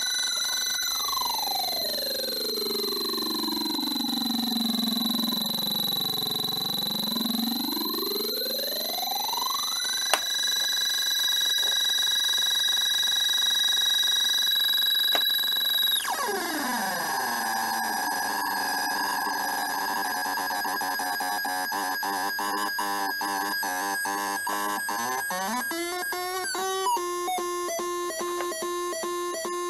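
An electronic synthesizer circuit whines with tones that sweep down and up in pitch.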